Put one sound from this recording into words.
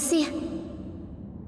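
A woman cries out sharply and briefly.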